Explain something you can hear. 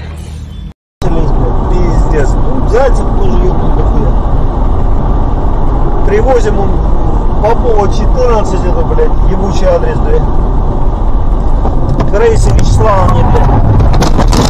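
A car engine hums steadily while driving along a road, heard from inside the car.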